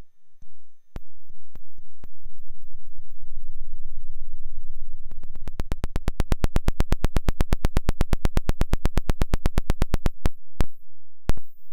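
A synthesizer hums, rising into a fast buzzing pulse.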